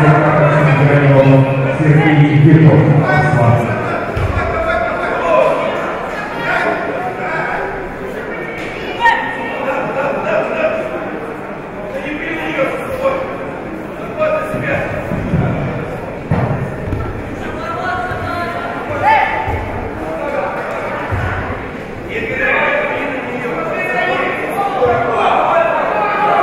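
A large crowd chatters and cheers in a large echoing hall.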